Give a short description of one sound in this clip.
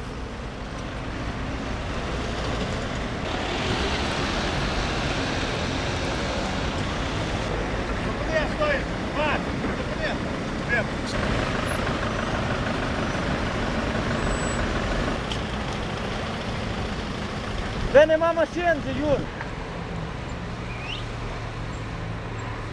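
Traffic rumbles steadily on a road outdoors.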